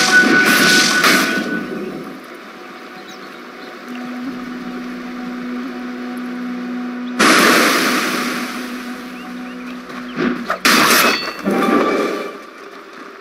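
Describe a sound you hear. Magic blasts and weapon strikes crash and whoosh in a fantasy battle.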